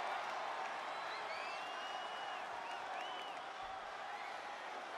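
Fans whistle from a crowd.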